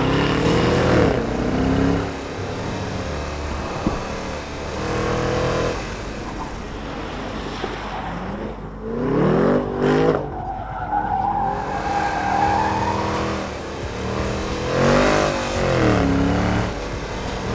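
A car engine revs hard, rising and falling in pitch as it accelerates and slows.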